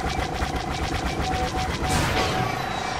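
A spacecraft's laser cannons fire in rapid bursts.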